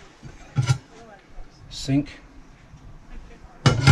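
A glass lid knocks as it is lifted off a sink.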